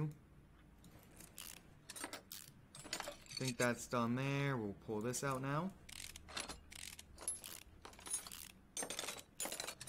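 A ratchet wrench clicks quickly as bolts are unscrewed.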